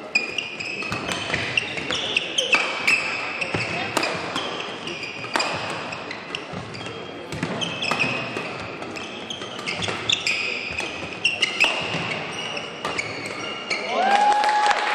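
Badminton rackets strike a shuttlecock again and again in a fast rally.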